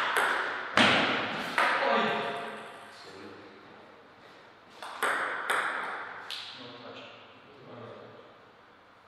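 A table tennis ball clicks sharply off paddles and the table in an echoing hall.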